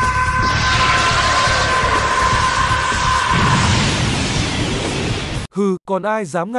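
An energy blast roars and explodes with a loud rushing burst.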